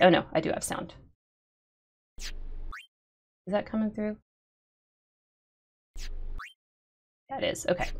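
A young woman talks with animation close to a microphone, with pauses.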